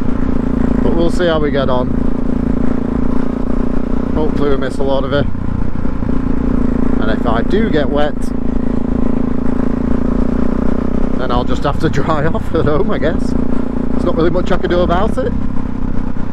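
A motorcycle engine revs up and changes gear several times.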